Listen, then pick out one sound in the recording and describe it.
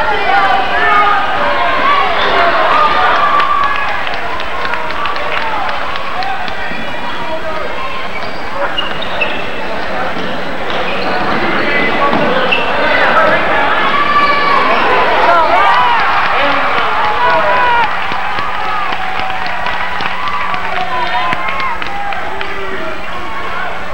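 A crowd of spectators cheers and shouts throughout a large echoing gym.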